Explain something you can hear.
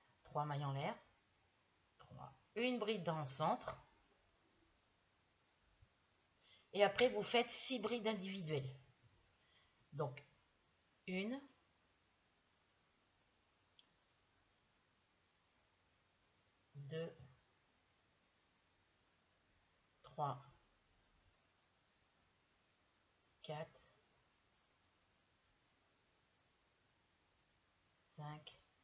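A woman speaks calmly close by, in short bursts with long pauses.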